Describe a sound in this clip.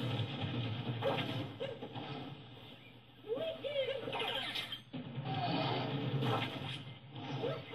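Video game music and effects play from a television's speakers.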